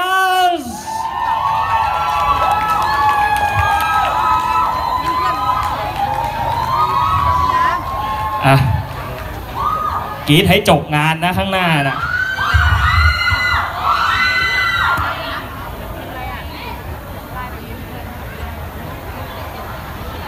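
Upbeat pop music with singing plays loudly over loudspeakers.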